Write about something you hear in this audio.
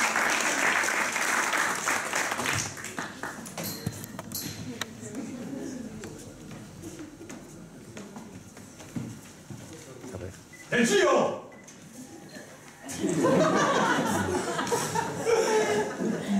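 A young man speaks with animation in an echoing hall.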